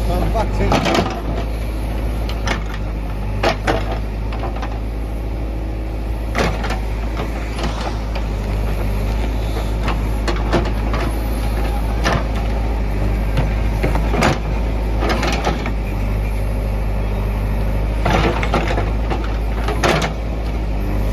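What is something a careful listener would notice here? A digger bucket scrapes and thuds into earth and debris.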